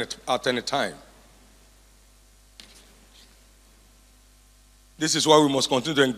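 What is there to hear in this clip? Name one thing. A man speaks calmly through a microphone, pausing between phrases.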